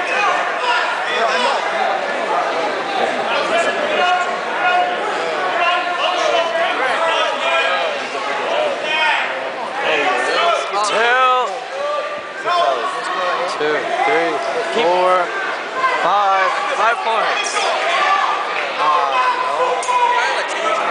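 A large indoor crowd shouts and cheers loudly in an echoing hall.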